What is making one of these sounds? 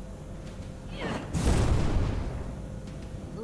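A fireball bursts with a loud whooshing roar.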